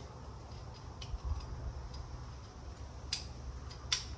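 Metal tools click and clink against a motorbike part.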